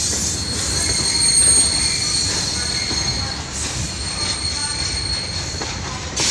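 A long freight train rumbles and clatters past close by.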